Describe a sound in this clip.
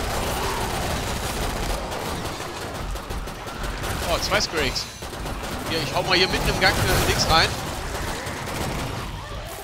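A rifle fires in quick bursts.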